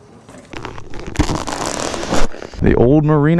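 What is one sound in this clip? A motorcycle engine runs.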